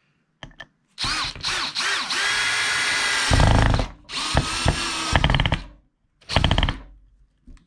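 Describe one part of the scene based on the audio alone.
A cordless drill whirs as it bores into wood, speeding up and slowing in bursts.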